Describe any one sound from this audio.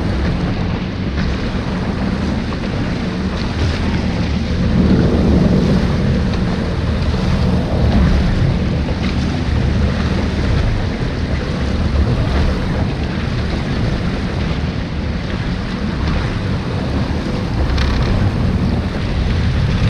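A jet ski engine rumbles steadily close by.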